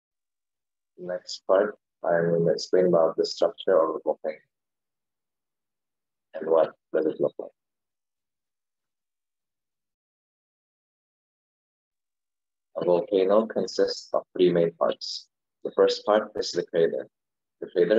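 A young man speaks calmly over an online call, with pauses.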